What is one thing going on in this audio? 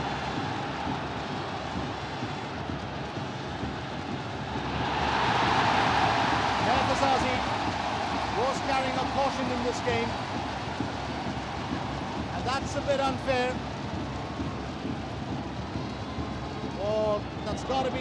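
A large stadium crowd roars steadily outdoors.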